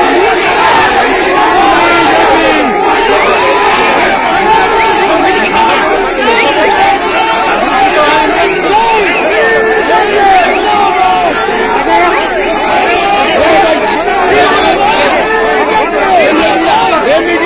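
A large crowd of men shouts and chants loudly and close by.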